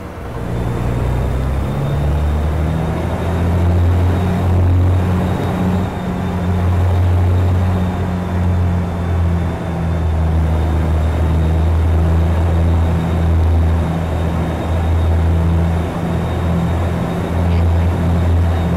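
A diesel truck engine drones at low speed, heard from inside the cab.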